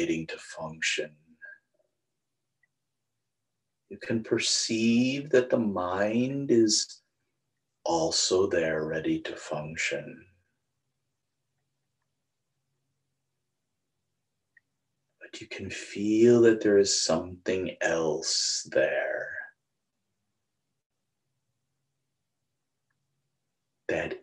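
A middle-aged man speaks calmly into a close microphone, with pauses.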